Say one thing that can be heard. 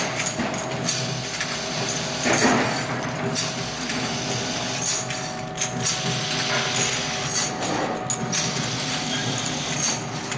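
A machine hums and clatters steadily.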